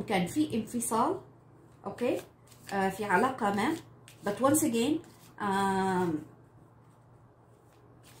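Playing cards are shuffled softly by hand.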